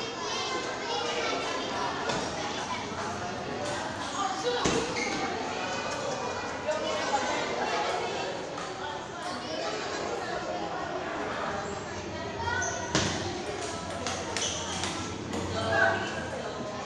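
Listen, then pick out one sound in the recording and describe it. Young people chatter and talk loudly in an echoing hall.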